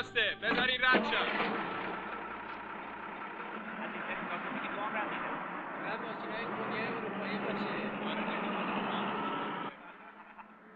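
A truck engine rumbles as a truck drives slowly past.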